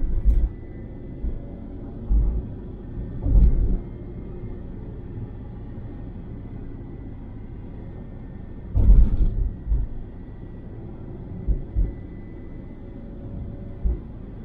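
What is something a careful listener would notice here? Wind buffets the car in low thumps now and then.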